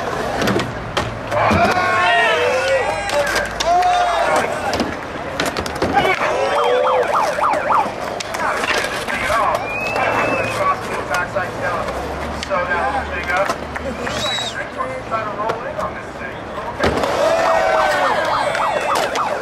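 A crowd of young men and women chatters and cheers outdoors.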